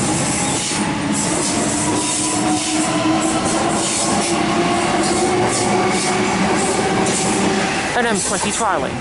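A train rumbles and whines as it pulls away.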